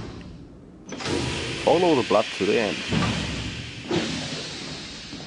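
Steam hisses loudly from a pipe.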